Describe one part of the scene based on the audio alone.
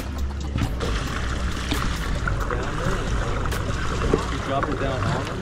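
Outboard motors idle with a low rumble.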